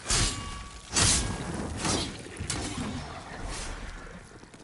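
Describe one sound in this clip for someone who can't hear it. Flames crackle and burst in impacts.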